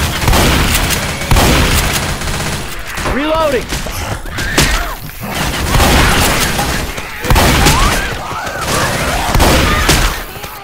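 A shotgun fires loud blasts again and again.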